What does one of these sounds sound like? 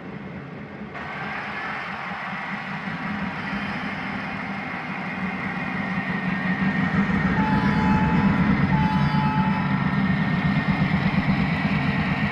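A model diesel locomotive rumbles closer, growing steadily louder.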